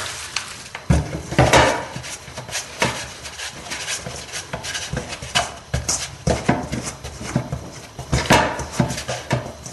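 A hand kneads and slaps dough against a metal bowl.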